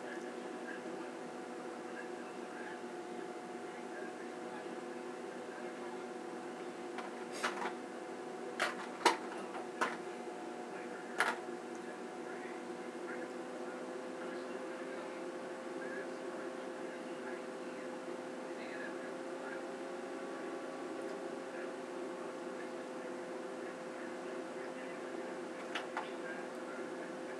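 Hands rustle softly through hair.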